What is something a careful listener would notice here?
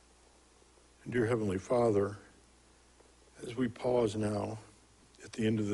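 A man prays aloud slowly through a microphone in an echoing room.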